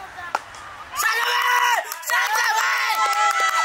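Young players shout excitedly outdoors.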